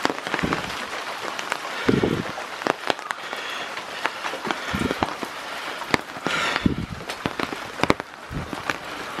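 Rain drips and patters steadily outdoors.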